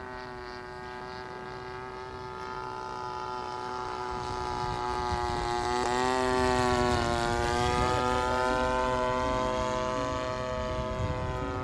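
A model airplane engine buzzes steadily overhead, growing louder as it passes close and then drops slightly in pitch.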